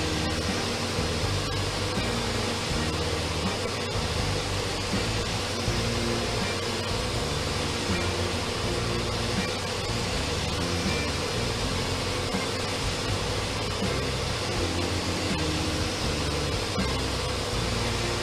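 A pressure washer sprays foam with a steady hiss.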